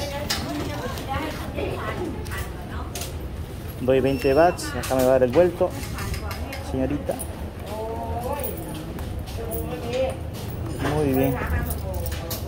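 A middle-aged woman talks calmly nearby.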